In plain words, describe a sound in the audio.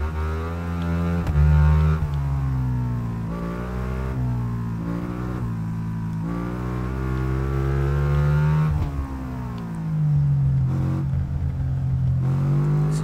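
A V-twin sport motorcycle engine revs hard, climbing and dropping in pitch with gear changes.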